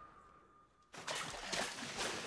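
Water splashes heavily.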